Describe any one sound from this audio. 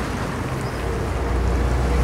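A bus passes close by.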